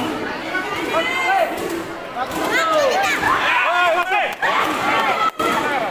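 Young karate fighters shout sharply as they strike.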